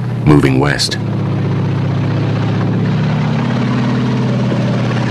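A tank engine roars steadily as it rolls past.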